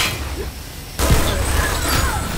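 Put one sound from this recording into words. A heavy machine gun fires a rapid, roaring burst.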